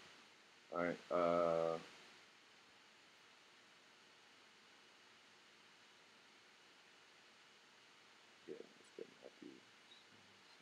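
A young man speaks briefly, close to the microphone.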